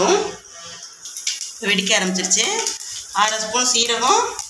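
Mustard seeds sizzle and crackle in hot oil.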